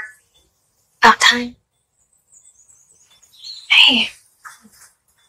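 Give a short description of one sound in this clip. A woman speaks weakly and softly, close by.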